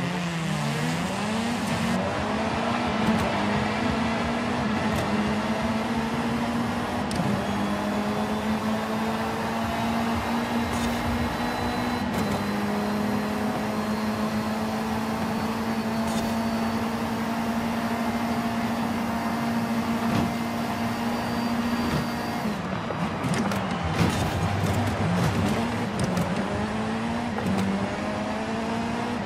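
A race car engine roars loudly, its pitch rising and falling through gear changes.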